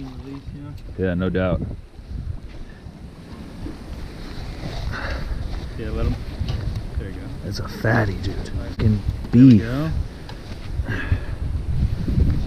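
A man talks excitedly nearby.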